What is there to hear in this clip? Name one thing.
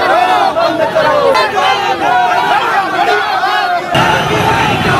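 A young woman shouts slogans close by.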